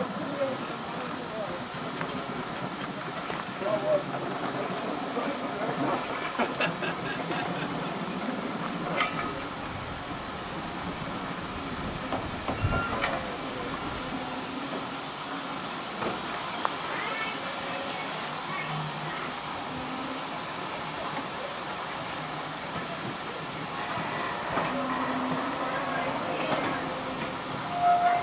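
Railway carriage wheels clack and squeal on the rails.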